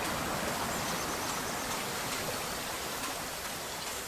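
A stream of water trickles and splashes.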